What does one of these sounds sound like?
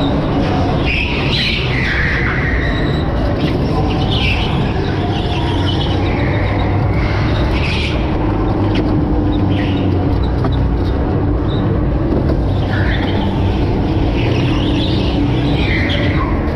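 Go-kart tyres squeal on a smooth floor.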